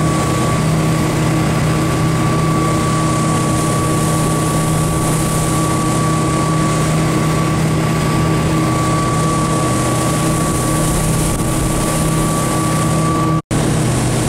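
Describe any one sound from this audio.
Water rushes and hisses in the boat's wake.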